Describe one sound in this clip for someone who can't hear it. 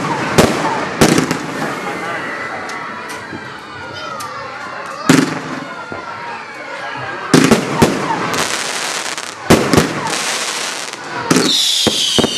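Fireworks fizz and crackle as sparks shoot up.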